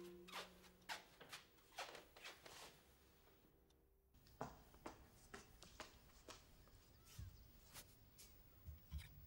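Footsteps walk across a floor.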